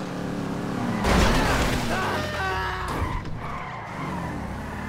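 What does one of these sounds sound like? Car tyres screech during a sharp skidding turn.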